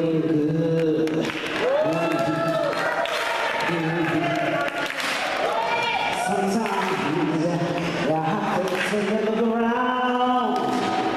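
A woman sings loudly into a microphone, heard through loudspeakers in an echoing hall.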